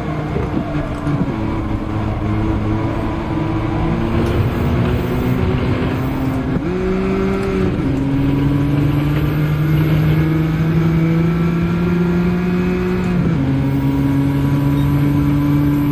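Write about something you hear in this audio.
A race car engine roars and shifts through gears.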